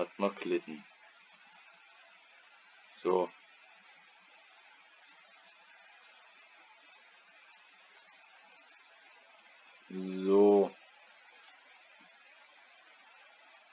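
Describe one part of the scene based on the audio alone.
Water flows and trickles softly.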